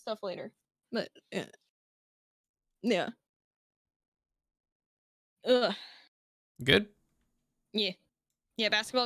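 A young man talks with animation in short bursts, close to a microphone.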